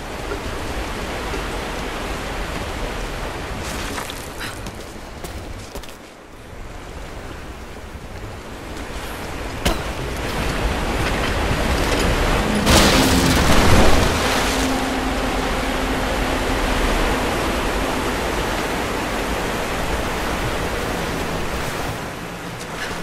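Water pours steadily from a waterfall.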